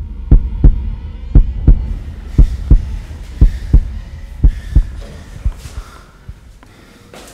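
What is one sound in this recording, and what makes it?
Footsteps thud on stairs.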